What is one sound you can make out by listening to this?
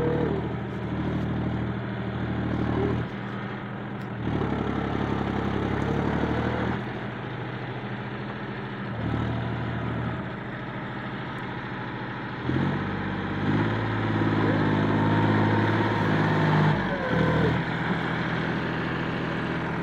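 A tractor engine rumbles and labours, rising and falling in strain.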